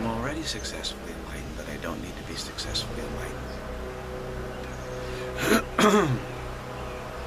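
An older man speaks calmly and close up.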